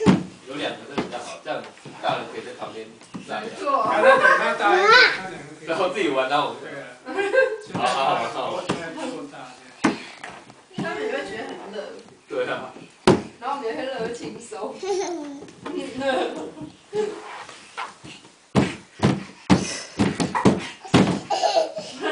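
Young children babble and squeal nearby.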